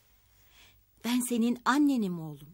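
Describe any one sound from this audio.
A middle-aged woman speaks emotionally, close by.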